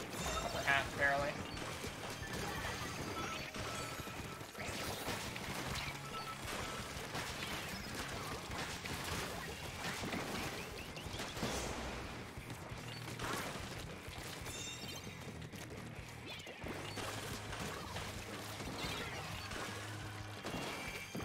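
Paint weapons spray and splatter in quick bursts.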